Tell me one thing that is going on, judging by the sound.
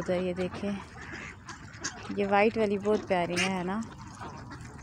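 Geese honk loudly nearby.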